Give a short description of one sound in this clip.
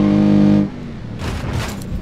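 A car crashes and tumbles with loud thuds.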